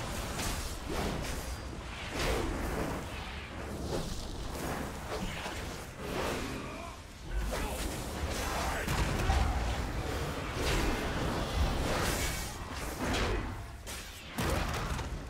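Weapons clash and strike repeatedly.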